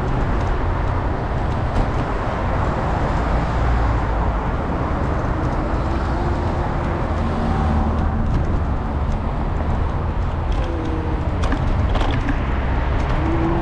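Traffic hums and rushes along a nearby street.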